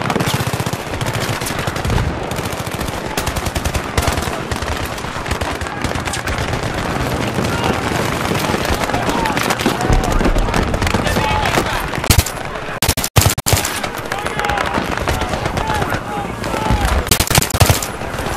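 A rifle fires in quick, loud bursts.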